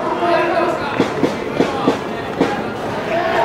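Spectators clap their hands loudly nearby.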